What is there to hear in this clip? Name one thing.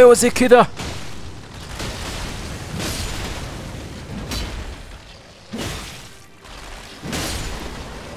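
Blades clash and strike repeatedly.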